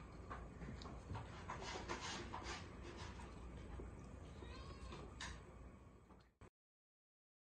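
Cats lap water from a bowl with quick wet licks.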